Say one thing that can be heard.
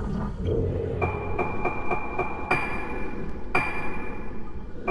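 Short electronic chimes sound as menu choices change.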